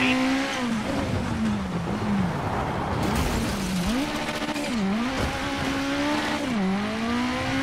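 A car engine revs up and down as gears shift.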